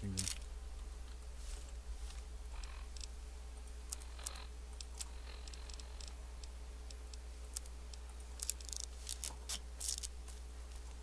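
Short electronic clicks and blips sound as menu items are selected.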